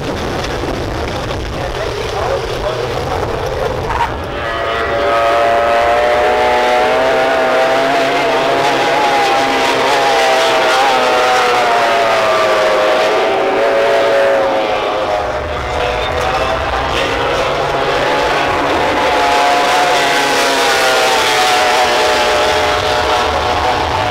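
A powerboat engine roars at high speed.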